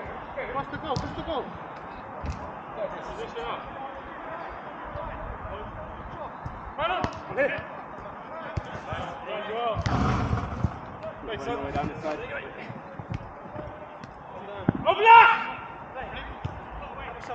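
Men shout to each other outdoors, some close and some farther off.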